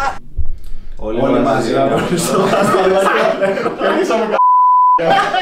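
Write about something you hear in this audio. Several young men laugh together.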